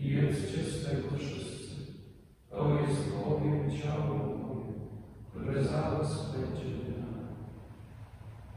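A man chants loudly through a microphone in a large echoing hall.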